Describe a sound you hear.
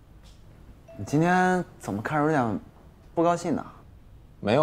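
A young man asks a question in a puzzled tone.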